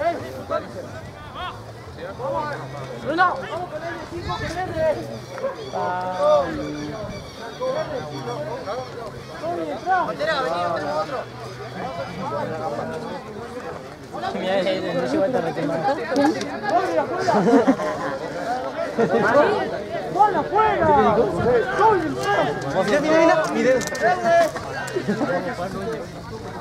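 Spectators and players chatter and call out nearby outdoors, growing louder and more excited.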